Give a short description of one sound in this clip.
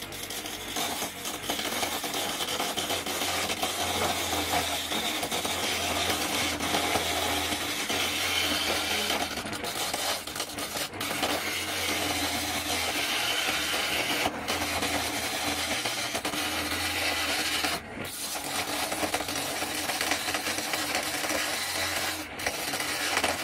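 An electric motor hums steadily as a lathe spins.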